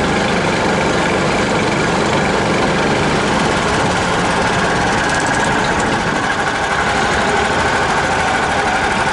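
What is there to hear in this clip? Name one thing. A vehicle engine hums steadily while driving.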